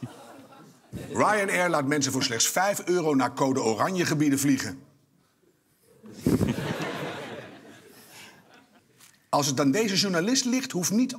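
A man speaks calmly and clearly into a microphone.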